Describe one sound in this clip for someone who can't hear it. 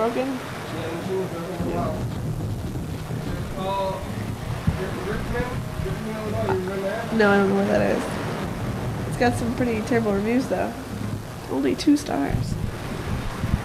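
A young person speaks into a microphone in a calm, casual way.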